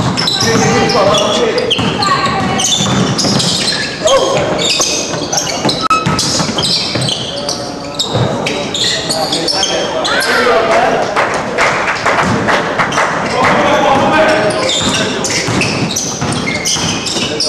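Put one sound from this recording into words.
Young men shout and call out across a large echoing gym.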